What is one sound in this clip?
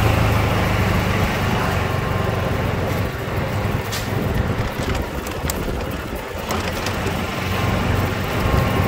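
A golf cart's electric motor hums steadily as it drives along a street.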